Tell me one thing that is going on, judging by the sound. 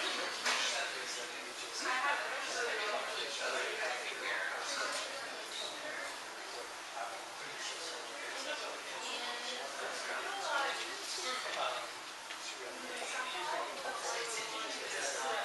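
A young woman speaks calmly to an audience.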